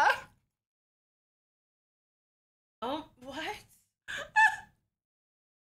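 An elderly woman speaks calmly and close up.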